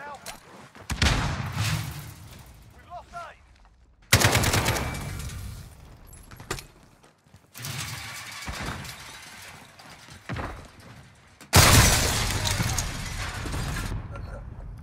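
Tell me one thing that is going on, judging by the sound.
Rifle shots bang loudly in quick bursts.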